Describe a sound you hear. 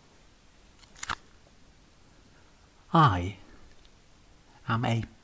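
A man speaks calmly, close by, in short phrases.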